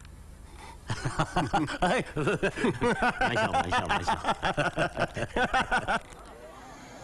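A man laughs heartily.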